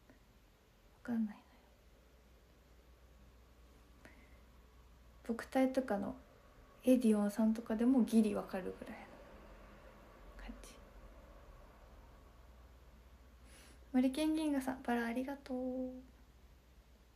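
A young woman speaks softly and expressively close to a microphone.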